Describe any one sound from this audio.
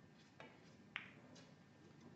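A snooker cue strikes the cue ball with a sharp click.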